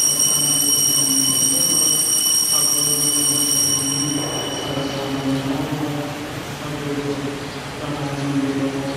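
An elderly man chants slowly through a microphone in a large echoing hall.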